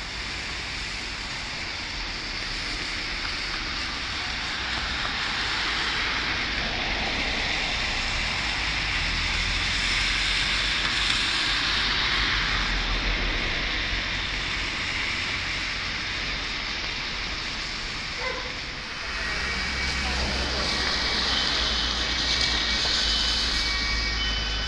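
A swollen river rushes past with a steady roar.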